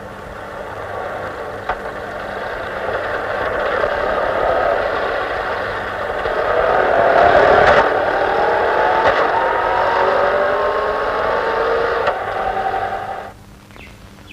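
A scooter engine putters along a street.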